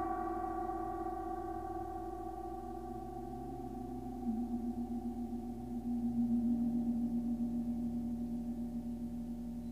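A gong and singing bowls ring with long, shimmering tones that slowly fade.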